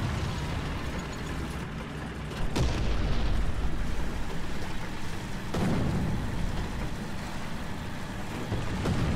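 A light tank's engine rumbles.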